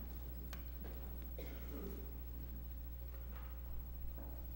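A man speaks briefly and faintly through a microphone in an echoing hall.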